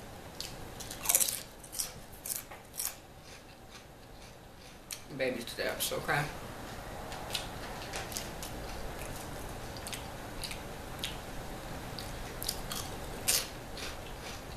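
A woman crunches on chips close to a microphone.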